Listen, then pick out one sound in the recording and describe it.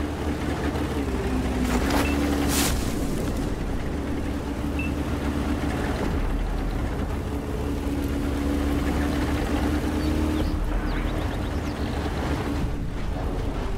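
A tank engine rumbles as the tank drives.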